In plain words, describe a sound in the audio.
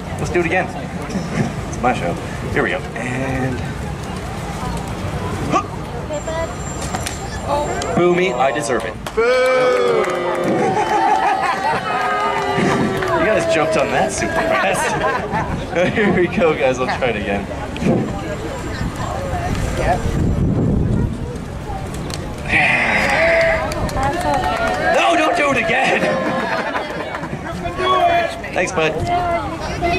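A man talks with animation to a crowd outdoors.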